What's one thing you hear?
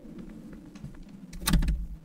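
A door handle rattles against a locked door.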